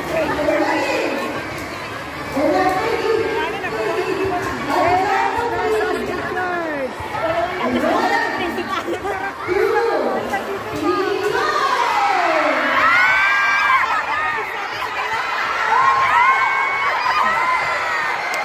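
A crowd of adults and children cheers and shouts in a large open-sided hall.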